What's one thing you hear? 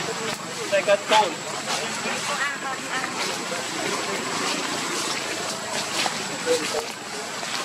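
A monkey's feet rustle through dry leaves.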